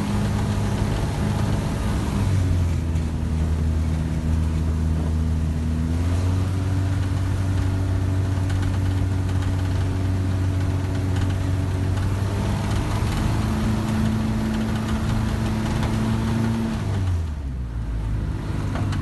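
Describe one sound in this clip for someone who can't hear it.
A small airplane's propeller engine drones steadily close by, its pitch shifting a few times before winding down near the end.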